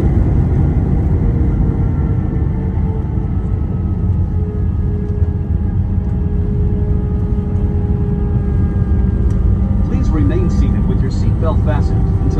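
Jet engines roar steadily with a deep rumble.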